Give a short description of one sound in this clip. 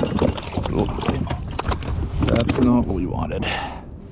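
A bottle splashes into the water.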